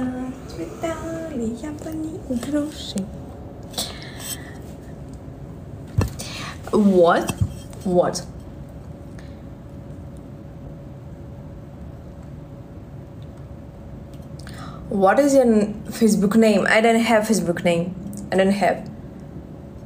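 A young woman talks close to the microphone in a casual, animated way.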